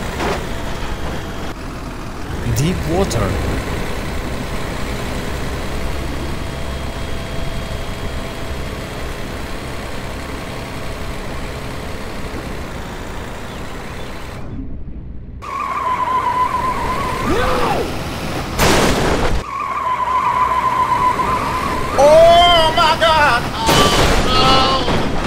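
A truck drives through water with a rushing splash.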